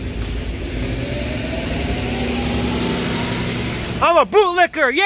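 A bus engine rumbles as the bus drives past close by.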